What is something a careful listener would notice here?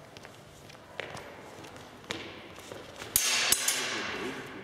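Swords clash with sharp metallic clanks.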